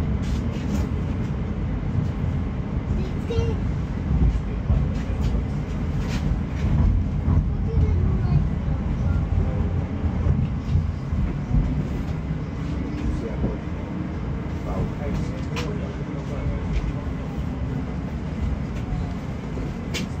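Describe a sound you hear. A tram rumbles along its rails with a low, steady drone.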